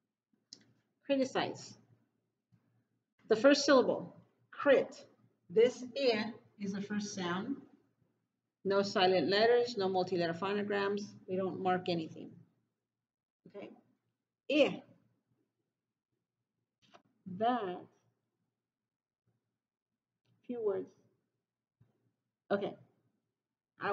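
A woman speaks clearly and slowly nearby, as if teaching.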